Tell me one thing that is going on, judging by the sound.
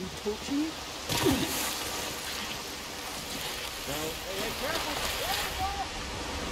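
Water rushes and splashes down a stream.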